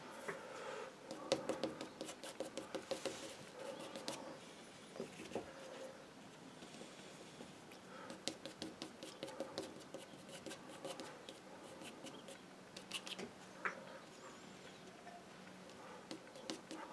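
A stiff brush dabs and scrubs against a canvas.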